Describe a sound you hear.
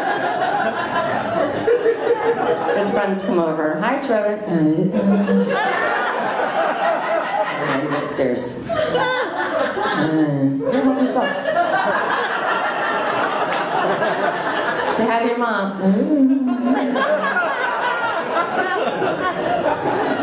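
A middle-aged woman talks with animation into a microphone over loudspeakers in an echoing room.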